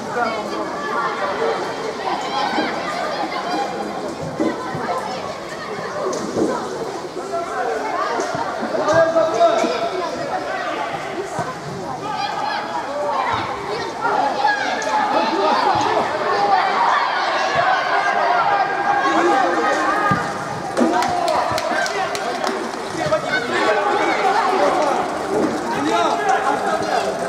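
Young boys shout and call out to each other in a large echoing hall.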